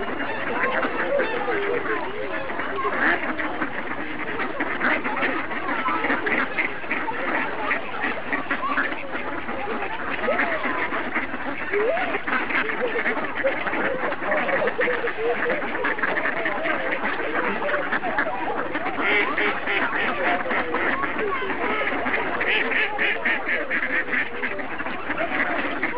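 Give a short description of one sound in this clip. Many ducks quack and chatter close by.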